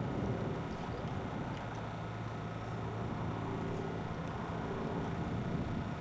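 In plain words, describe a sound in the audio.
Skateboard wheels roll on pavement.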